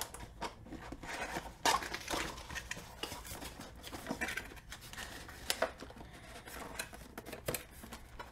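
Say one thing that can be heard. Cardboard scrapes and rubs as a box is slid open.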